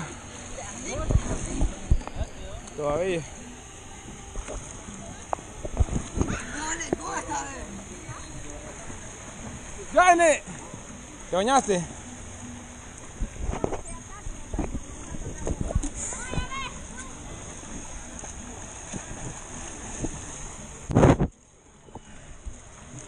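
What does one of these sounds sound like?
Water splashes in a pool.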